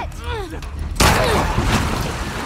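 A young woman shouts in alarm.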